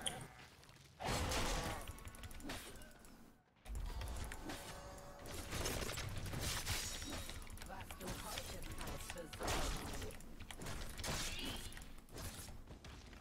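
Video game battle sounds clash and zap.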